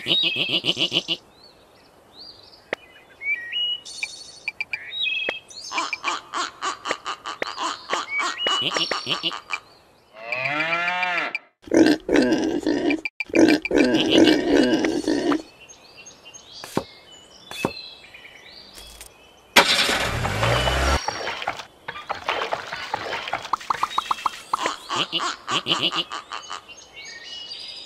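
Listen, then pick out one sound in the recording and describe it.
Cartoon pigs grunt and squeal.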